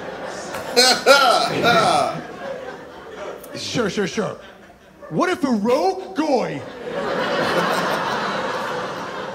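A young man laughs heartily close by.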